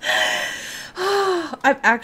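A young woman squeals excitedly close to a microphone.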